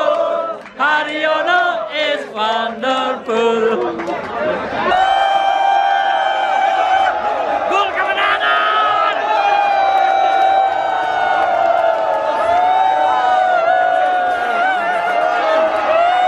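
A large crowd of young people sings along loudly outdoors.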